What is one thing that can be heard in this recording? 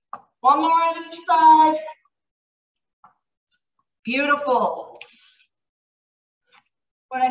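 A woman speaks with energy through a microphone, instructing in short bursts.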